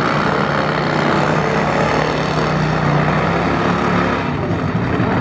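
A motorcycle tyre screeches in a smoky burnout.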